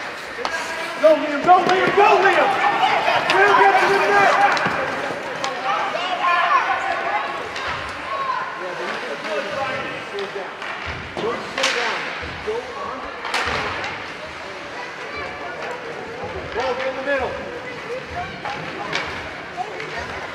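A crowd of spectators shouts and cheers in an echoing rink.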